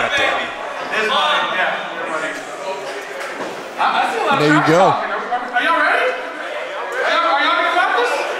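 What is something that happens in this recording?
A man announces loudly and with animation through a microphone over loudspeakers in a large echoing hall.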